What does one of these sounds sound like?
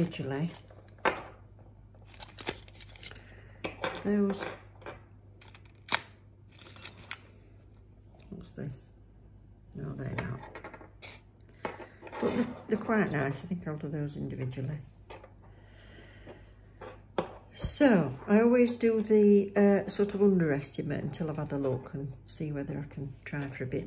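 Metal earrings clack softly against a wooden tabletop.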